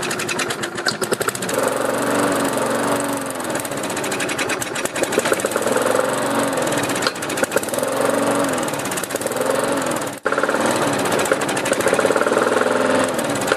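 A small petrol engine runs roughly, its speed rising and falling.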